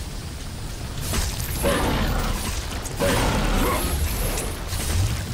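Magic bursts crackle and whoosh in loud rushes.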